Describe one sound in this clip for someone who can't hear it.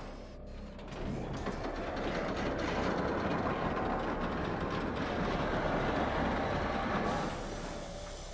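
A heavy vehicle engine rumbles loudly and steadily.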